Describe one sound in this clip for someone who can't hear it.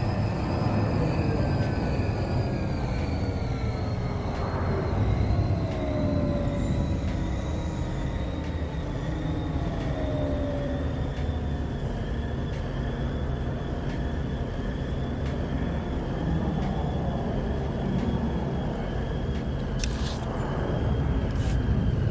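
A hovering vehicle's engine hums and whooshes steadily.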